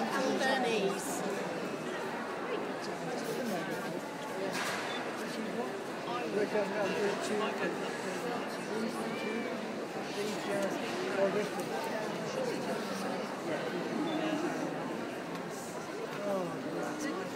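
A crowd of people chatter in a large echoing hall.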